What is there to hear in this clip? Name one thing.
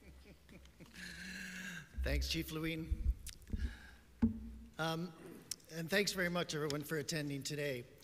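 A man speaks calmly into a microphone, heard through loudspeakers in a large room.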